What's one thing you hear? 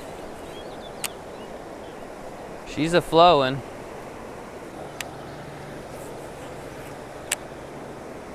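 A fishing reel clicks now and then.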